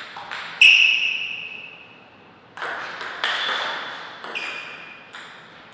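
A table tennis ball clicks sharply off bats and the table, ringing in a large room.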